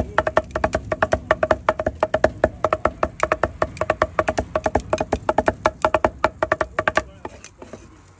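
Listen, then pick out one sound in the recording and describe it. A cleaver chops rapidly on a wooden board.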